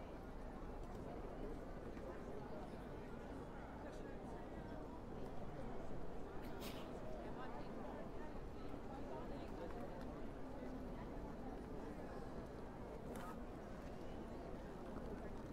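A crowd of people chatters steadily outdoors.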